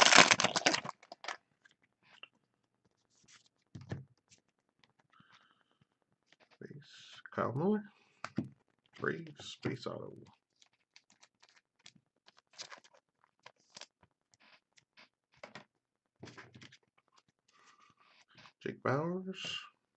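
Trading cards rustle and flick against each other.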